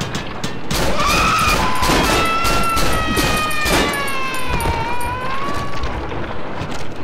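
A monster shrieks loudly.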